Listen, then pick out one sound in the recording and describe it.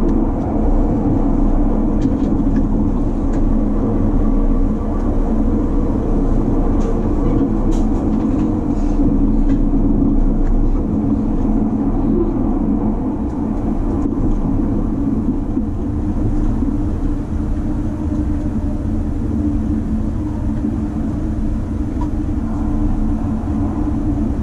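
A train rumbles and hums steadily from inside a carriage as it rolls along.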